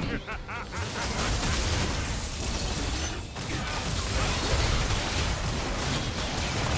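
Magic spell effects whoosh and crackle in a busy fight.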